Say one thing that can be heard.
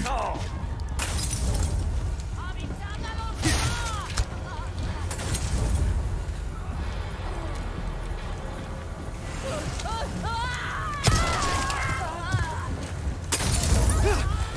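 Gunshots bang out sharply now and then.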